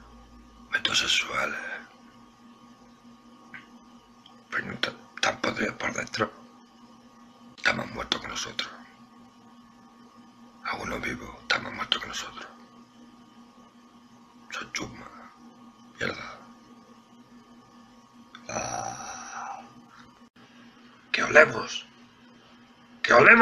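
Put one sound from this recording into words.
A man speaks in short bursts close by, with pauses between phrases.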